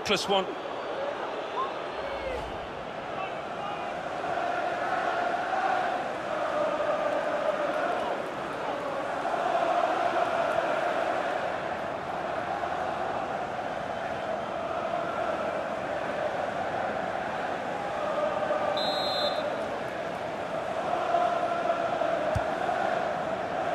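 A large stadium crowd roars and chants steadily, swelling and falling.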